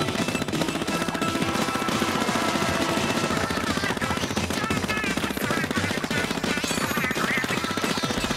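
A gun sprays liquid in rapid, wet splattering bursts.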